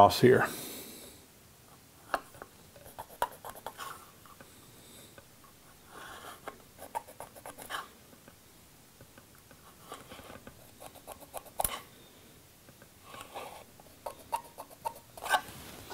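A pencil scratches lightly on wood.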